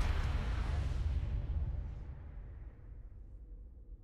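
A deep booming swell rings out and slowly fades away.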